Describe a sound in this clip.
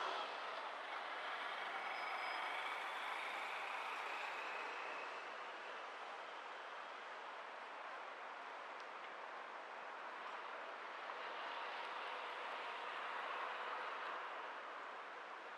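A car drives past nearby.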